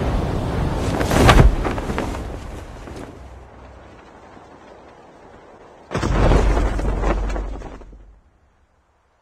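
Wind rushes loudly past during a parachute drop, then cuts off.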